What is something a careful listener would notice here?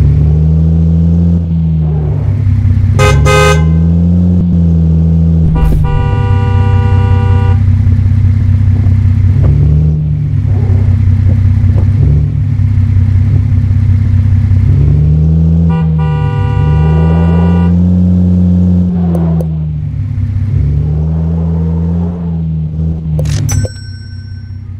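A bus engine drones, its pitch rising and falling as it speeds up and slows down.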